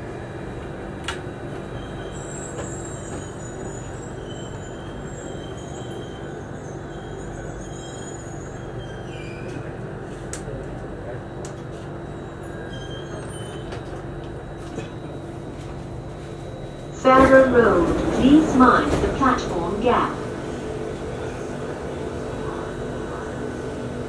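A train car hums and rumbles steadily while it rides.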